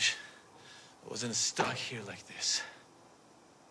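A man speaks quietly and seriously, close by.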